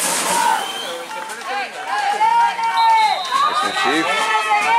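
A crowd of spectators shouts and cheers outdoors at a distance.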